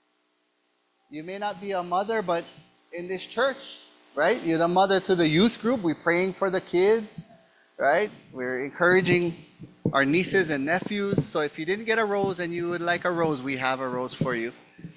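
A man speaks with animation into a microphone, heard through loudspeakers in a large room.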